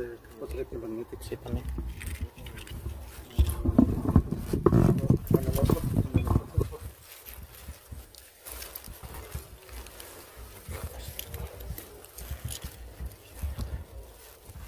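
Clothing rustles and brushes against the microphone.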